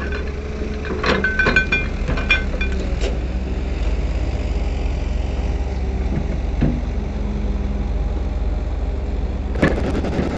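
An excavator bucket scrapes and scoops through wet sand.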